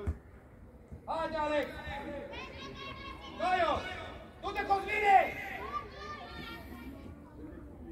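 Young boys shout to each other across an open field.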